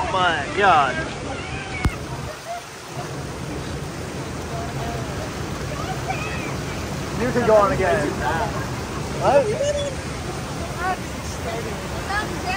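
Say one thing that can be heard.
Water rushes and splashes steadily around a raft.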